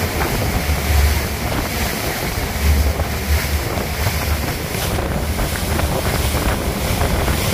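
Water rushes and splashes loudly against the side of a fast moving boat.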